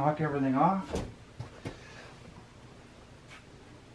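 Fur pelts thump softly into a dryer drum.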